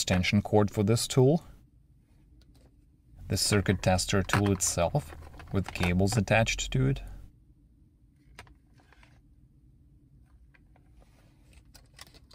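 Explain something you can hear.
Cables rustle and slide as they are lifted out of a hard case.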